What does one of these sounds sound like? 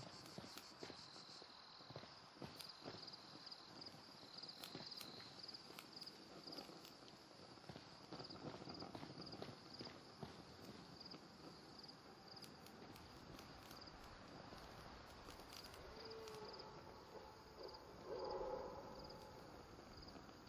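A torch flame crackles and hisses softly.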